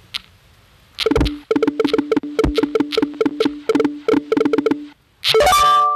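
Quick game chimes tick rapidly as a score counts up.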